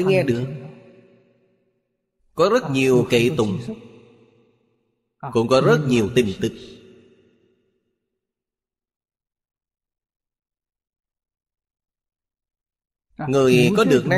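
An elderly man speaks calmly and slowly into a close microphone, with pauses between phrases.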